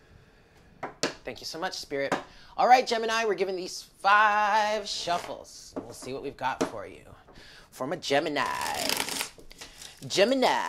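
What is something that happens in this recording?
Playing cards riffle and slap together as they are shuffled.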